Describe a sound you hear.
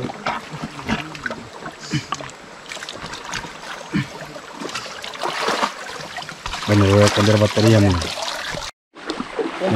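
Muddy water splashes and sloshes as a man digs with his arms.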